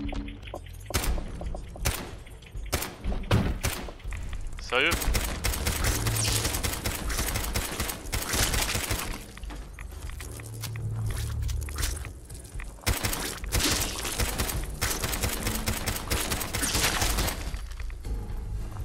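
A pistol fires in sharp, repeated shots.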